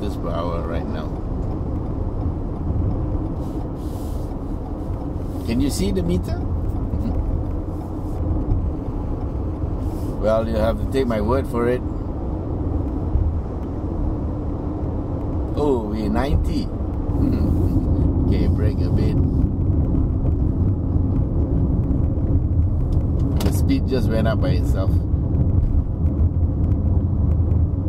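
A car engine hums steadily with road noise from inside the cabin.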